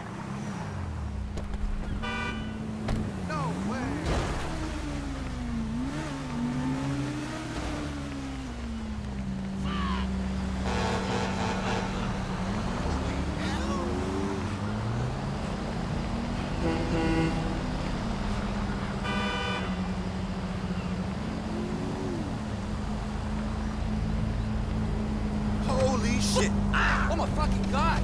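Car engines hum steadily on a road.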